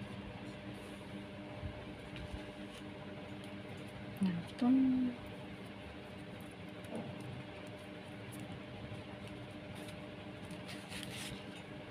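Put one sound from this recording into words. Hands rustle and shift rough twine on a hard surface.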